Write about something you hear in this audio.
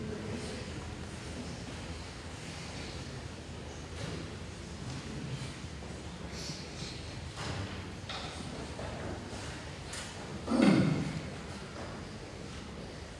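A woman speaks calmly and reads out in a large echoing hall.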